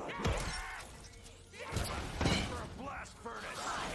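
A gun fires in loud blasts.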